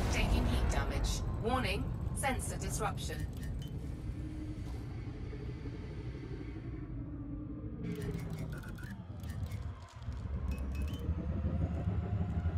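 A spaceship engine hums with a deep, steady rumble.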